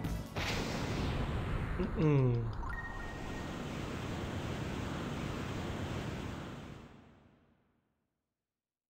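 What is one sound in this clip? A swirling rush of magical wind roars steadily, then fades away to silence.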